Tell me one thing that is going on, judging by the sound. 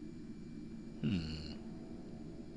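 A magical shimmer chimes briefly with a falling low whoosh.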